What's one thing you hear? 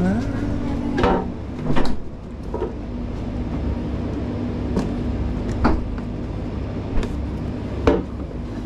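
Peppers thud into a metal tray.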